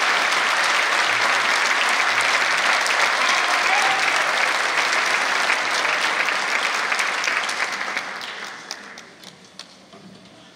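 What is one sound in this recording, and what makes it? A large crowd applauds loudly in a large hall, then the applause fades away.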